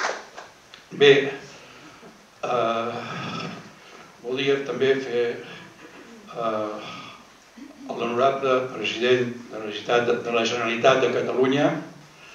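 An elderly man speaks calmly into a microphone over a loudspeaker.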